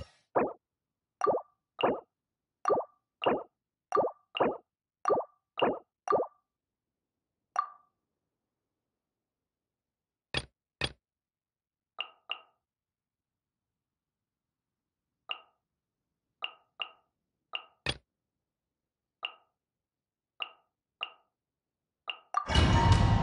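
Short menu clicks and chimes sound in quick succession.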